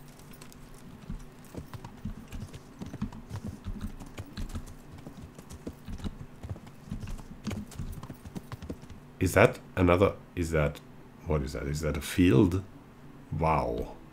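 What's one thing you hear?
A horse's hooves clop steadily on a dirt path.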